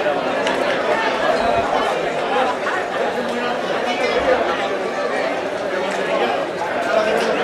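A crowd of people shout and chatter loudly outdoors.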